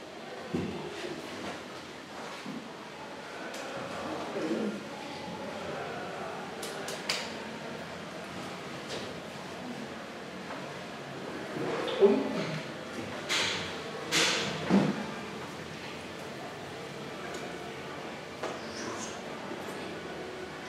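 A man's hands softly clap and slap together.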